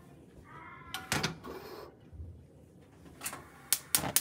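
A metal pot knocks against a stove.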